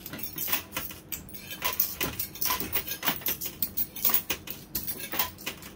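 Coins and chips clink and clatter against each other in a coin pusher machine.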